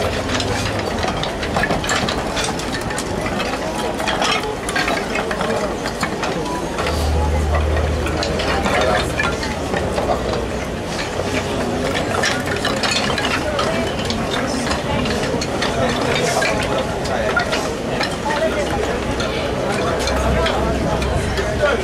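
Wooden blocks knock and clatter as they are stacked.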